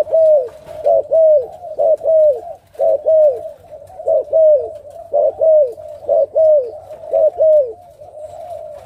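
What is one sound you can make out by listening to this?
A dove coos in a quick, repeated rhythm close by.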